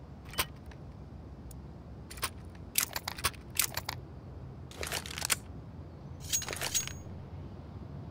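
A knife swishes through the air.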